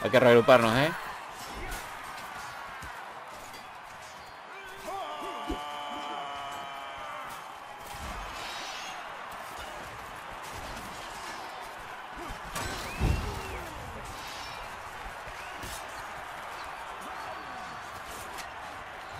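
Swords clash and clang in a battle.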